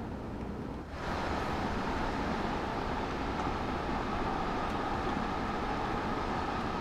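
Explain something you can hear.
A passing electric locomotive hums loudly and steadily.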